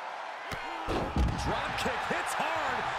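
A wrestler crashes down onto the floor outside the ring.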